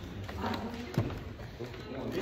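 Hands slap onto a wooden floor.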